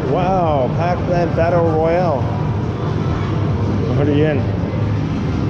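Arcade game machines play bright electronic jingles.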